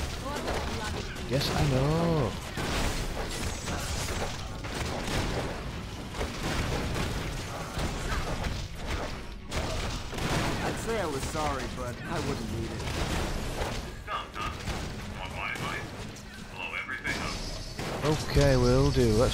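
Metal robots clang and smash in a fast, noisy fight.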